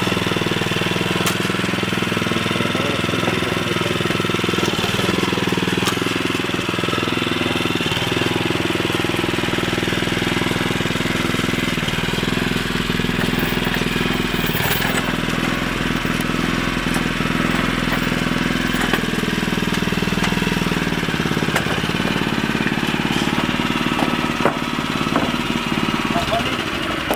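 A small petrol engine on a tracked carrier runs.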